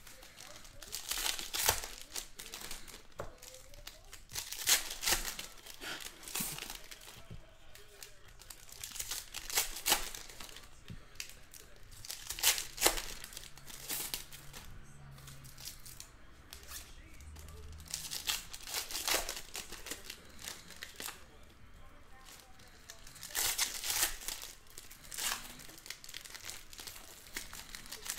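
Foil wrappers crinkle and tear as card packs are ripped open.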